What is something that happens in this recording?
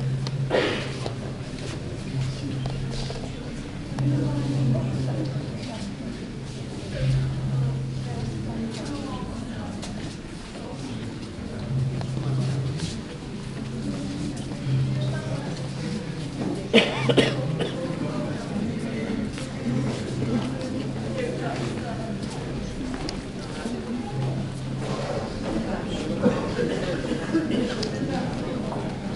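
Footsteps shuffle softly on a hard floor in a large echoing hall.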